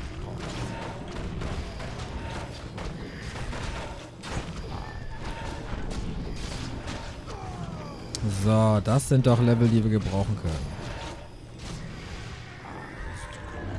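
Weapons clash and spells crackle in a game battle.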